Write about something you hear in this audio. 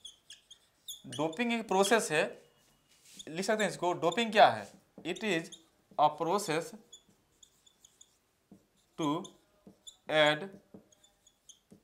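A young man talks calmly, close to a microphone, in short phrases.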